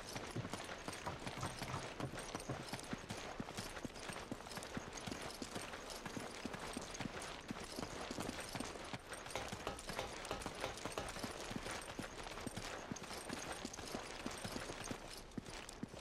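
Footsteps thud quickly on dirt as a figure runs.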